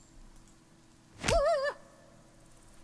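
A punch lands with a sharp hit.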